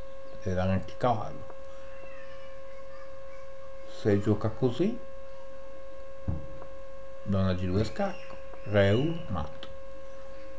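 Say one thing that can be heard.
A middle-aged man speaks calmly in short phrases through a microphone.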